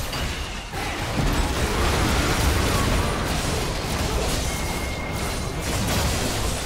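Magic blasts boom loudly.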